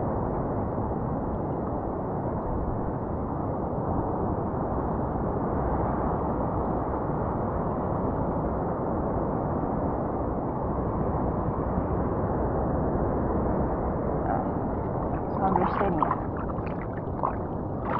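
Water laps and sloshes close by, heard from low on the surface of the open sea.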